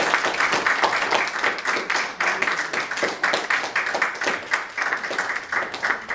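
A small string orchestra plays a lively, rhythmic piece in a room.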